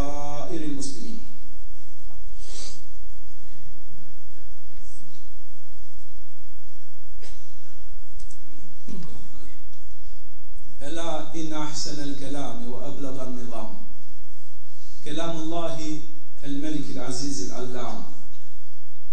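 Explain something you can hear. A man chants loudly through a loudspeaker, echoing in a large hall, in long drawn-out phrases.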